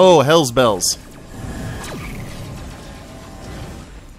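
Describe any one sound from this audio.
Laser cannons fire continuously.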